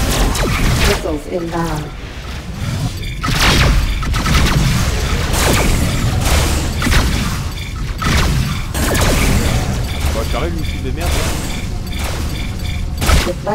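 A spaceship's engines roar steadily.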